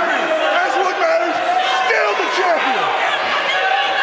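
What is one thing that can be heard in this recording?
A man yells loudly up close.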